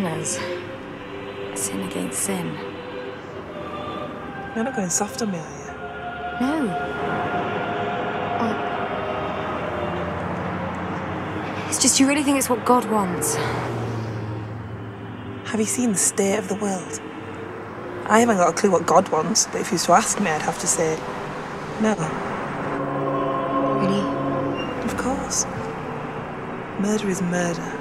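A young woman talks calmly, close by.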